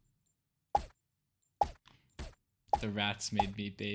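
A silenced pistol fires sharp single shots.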